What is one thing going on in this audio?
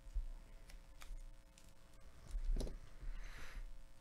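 A foil card wrapper crinkles and tears open.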